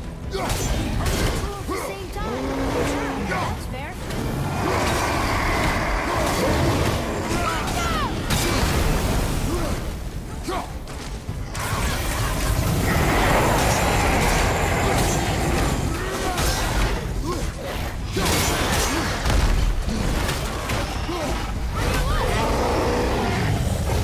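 Heavy axe blows strike a large beast.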